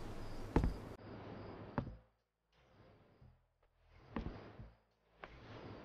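Cloth rustles softly as a man sits down on a bed.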